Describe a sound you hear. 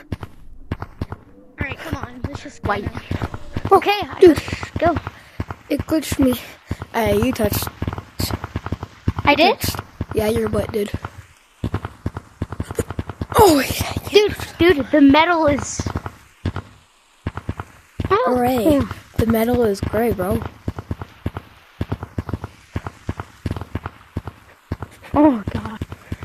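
Hands slap rapidly against hard surfaces.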